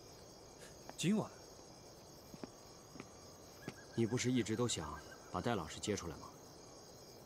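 A young man speaks quietly and firmly, close by.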